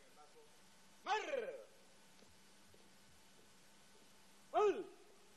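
A man shouts short military commands through a loudspeaker, echoing outdoors.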